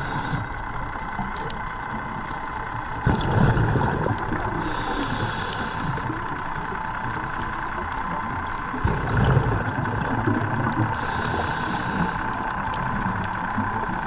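Water rushes and churns, heard from underwater.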